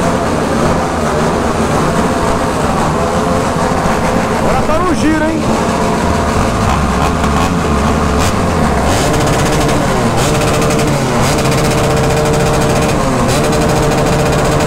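Motorcycle engines idle and rumble close by.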